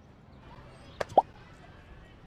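A game menu pops open with a short chime.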